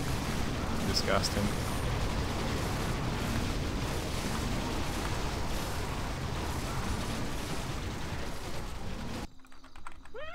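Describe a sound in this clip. A dense battle din of clashing weapons and spell effects roars steadily.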